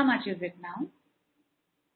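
A woman speaks briefly and clearly into a microphone.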